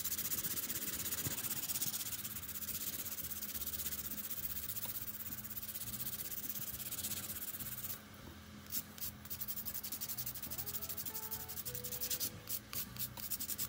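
A nail file rasps quickly back and forth against a fingernail.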